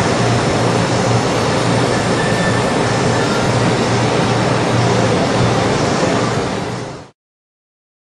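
A heat gun blows with a steady loud whir.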